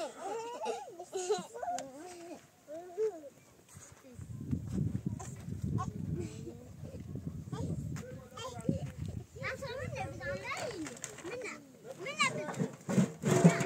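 A small child babbles and chatters nearby.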